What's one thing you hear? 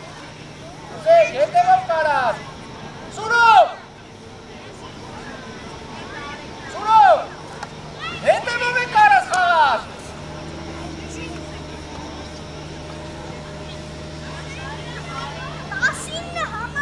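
Children shout loudly across an open sports field.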